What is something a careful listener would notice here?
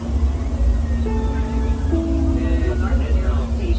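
Train brakes squeal in high tones.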